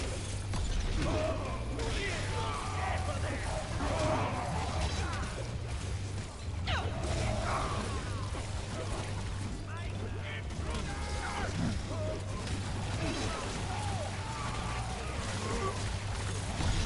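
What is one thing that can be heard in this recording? Game spells crackle and blast in bursts.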